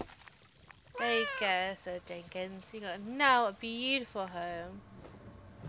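A cat meows several times.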